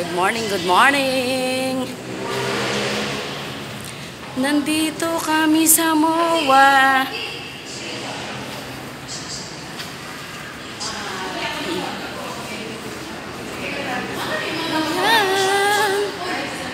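A middle-aged woman talks with animation close to the microphone.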